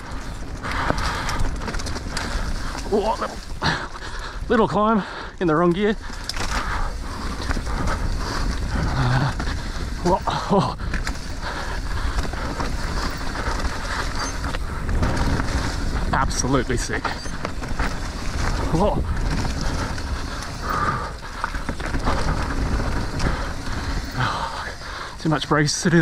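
Wind rumbles past a moving rider.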